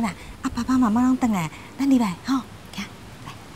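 A middle-aged woman speaks gently, close by.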